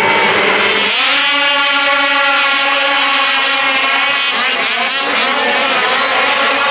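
Snowmobile engines roar as racers launch from the start line.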